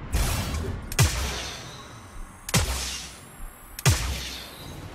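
A sniper rifle fires sharp cracking shots in a game.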